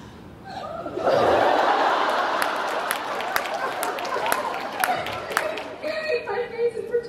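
A crowd laughs and cheers loudly in a large hall.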